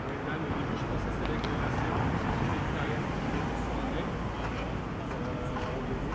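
A taxi drives past close by.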